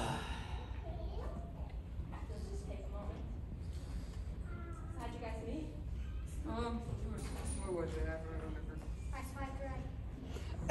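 A teenage girl speaks with feeling.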